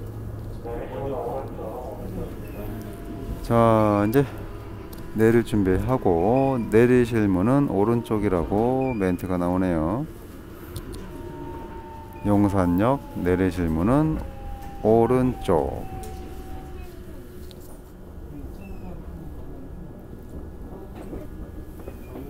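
A subway train rumbles steadily along the tracks.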